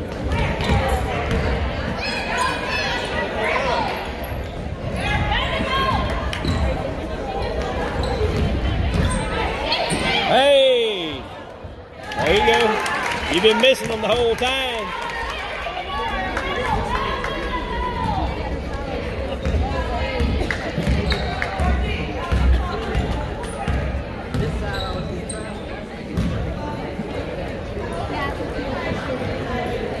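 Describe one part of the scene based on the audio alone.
A basketball bounces on a hardwood court.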